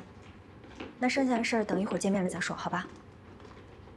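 A young woman talks calmly on a phone, heard up close.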